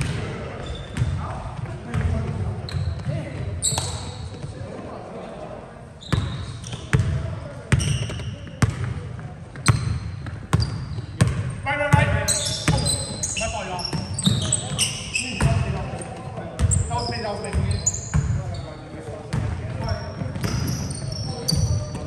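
A basketball bounces on a hard floor with sharp thuds in an echoing hall.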